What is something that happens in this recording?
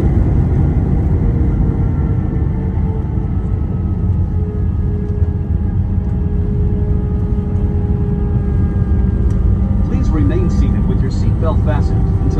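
An airliner rolls and rumbles along a runway.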